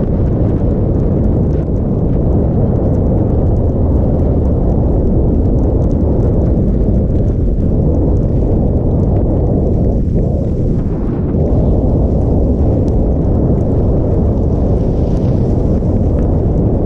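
Skis hiss and scrape over snow.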